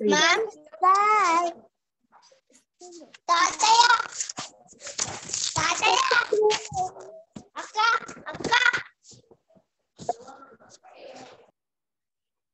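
A young boy speaks calmly through an online call.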